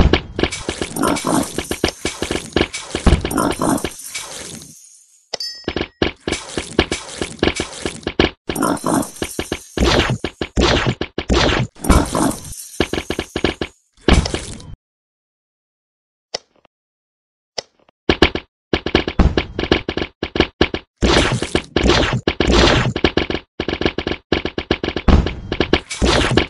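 Rapid cartoonish popping and zapping game sounds play in quick bursts.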